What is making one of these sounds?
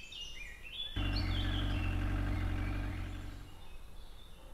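A small car's engine putters as the car drives up.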